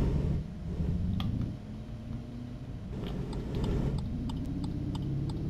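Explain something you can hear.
A car engine rumbles as a car drives and turns.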